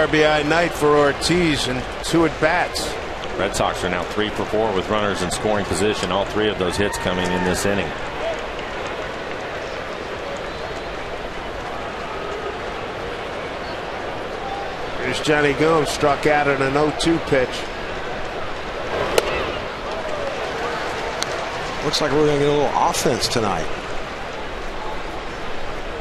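A large stadium crowd murmurs steadily in the open air.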